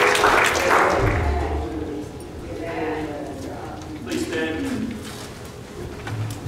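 A man speaks through a microphone and loudspeakers in a large echoing hall.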